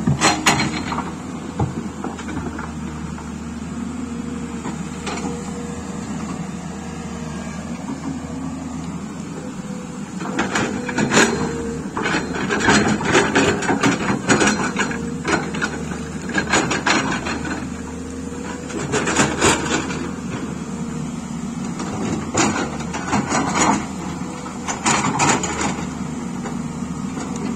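An excavator's diesel engine rumbles steadily nearby.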